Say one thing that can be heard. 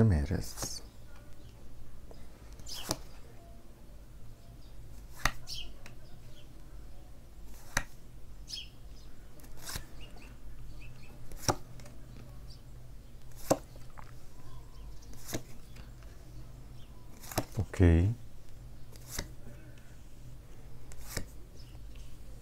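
Cards are laid down one by one with soft slaps.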